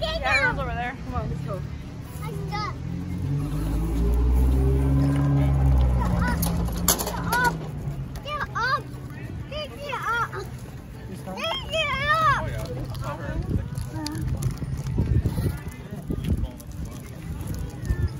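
Wagon wheels rumble over paving stones and then asphalt.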